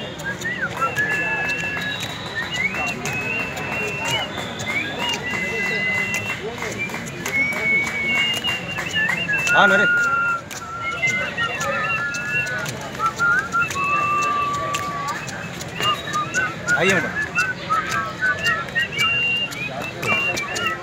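A middle-aged man speaks close by, outdoors, with animation.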